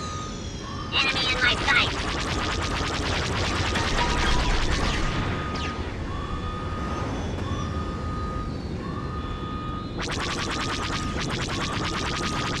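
Laser blasts fire in rapid bursts.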